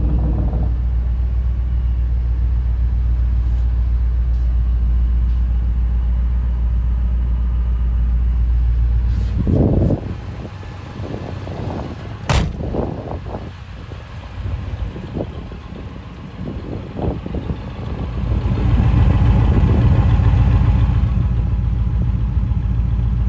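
A V8 engine idles with a deep exhaust rumble.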